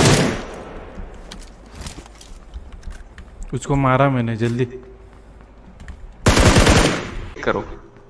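A rifle fires a quick burst of loud shots.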